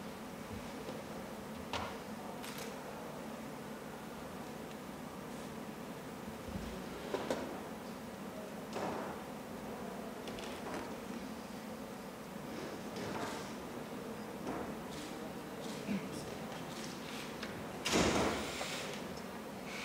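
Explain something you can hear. A young woman speaks quietly at a distance in a large hall.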